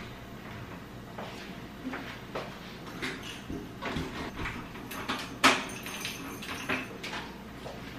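Keys rattle and click in a door lock.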